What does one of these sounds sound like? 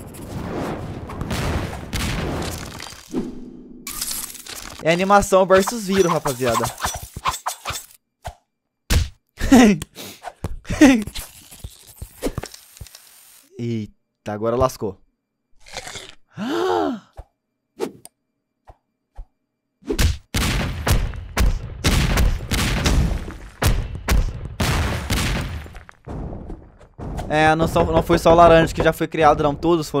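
A young man talks and reacts with animation into a close microphone.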